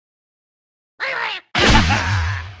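A bird is launched from a slingshot with a stretching twang.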